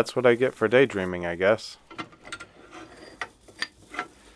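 Curly metal shavings rustle and crinkle as a hand pulls at them.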